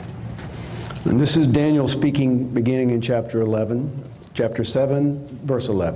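A man speaks calmly through a microphone and loudspeakers in a large room.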